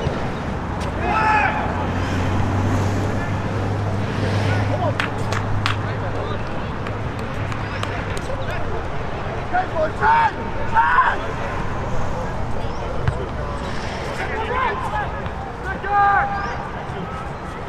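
Young men shout to each other outdoors, from a distance.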